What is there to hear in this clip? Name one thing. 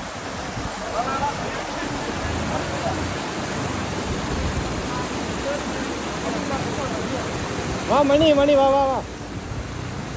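Young men call out to each other outdoors.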